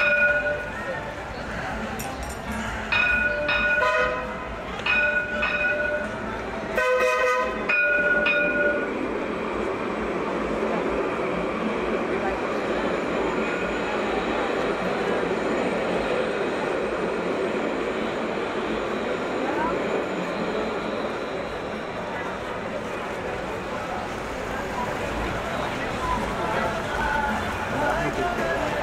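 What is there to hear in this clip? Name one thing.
A crowd of people talk and murmur nearby outdoors.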